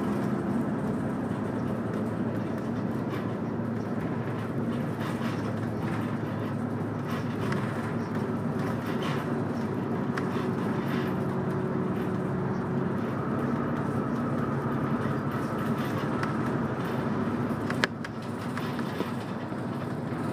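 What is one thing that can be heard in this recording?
A car engine hums steadily from inside the moving car.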